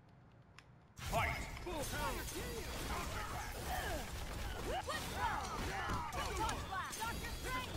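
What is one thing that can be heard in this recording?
Energy blasts whoosh and crackle as fighters clash.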